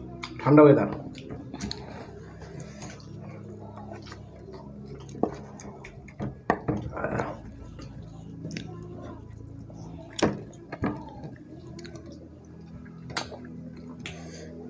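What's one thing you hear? People chew and smack their lips softly.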